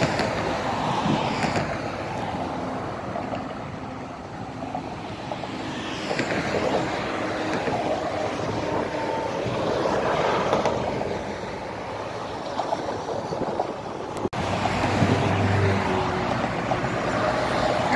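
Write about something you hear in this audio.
Cars and trucks rush past on a busy motorway outdoors.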